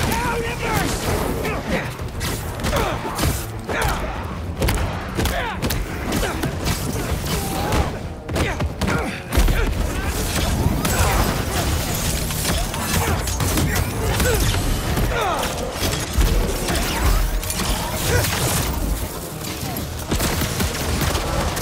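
Punches and kicks land with heavy thuds in a fast fight.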